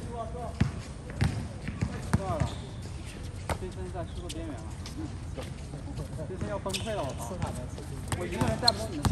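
Young men call out to each other from across an outdoor court.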